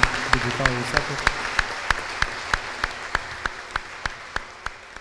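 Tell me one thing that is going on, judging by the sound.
A small audience applauds, clapping in a steady rhythm that slowly fades.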